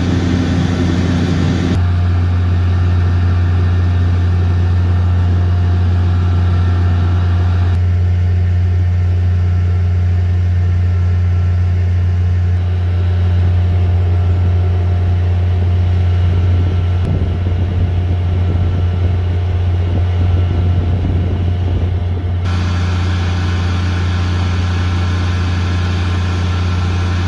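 A fire engine's motor idles with a low steady rumble.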